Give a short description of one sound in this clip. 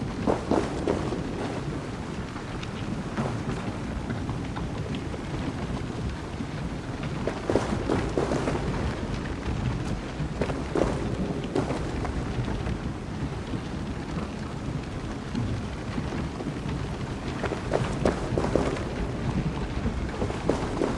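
Footsteps walk steadily on stone.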